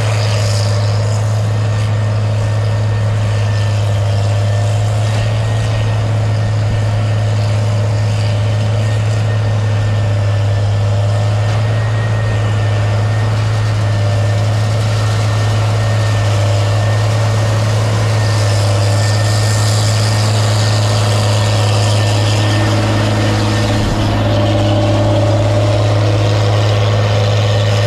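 A harvester engine drones steadily as the machine works through the field.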